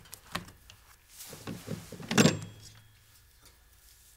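A telephone handset clatters as it is lifted from its cradle.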